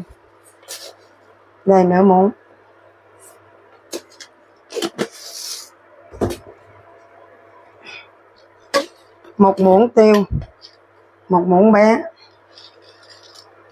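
A spoon scrapes and taps against a glass jar.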